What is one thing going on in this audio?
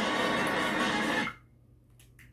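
A racing video game roars loudly from a television speaker, then cuts off.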